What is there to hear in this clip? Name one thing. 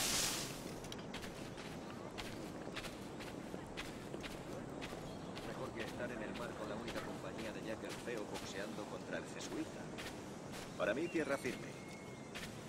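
Footsteps crunch on dirt and grass at a walking pace.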